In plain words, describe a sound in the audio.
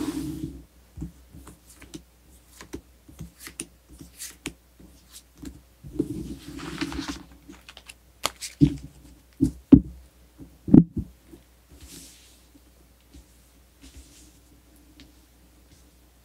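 Cards slide and tap on a cloth-covered table.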